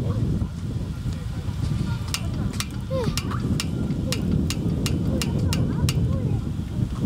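Cart wheels roll over pavement.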